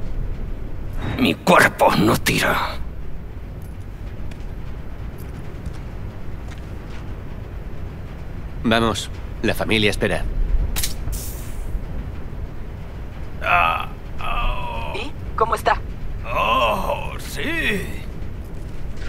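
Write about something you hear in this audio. A man groans and grunts in pain up close.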